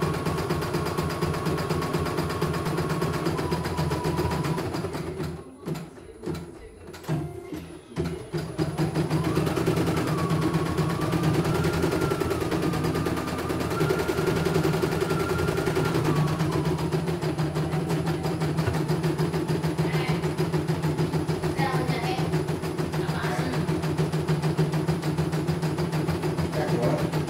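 An embroidery machine hums and stitches rapidly, with a steady rattling whir.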